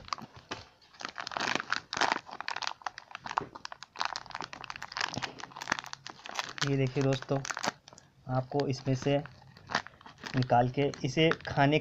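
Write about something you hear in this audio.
A foil pouch crinkles and rustles as it is handled.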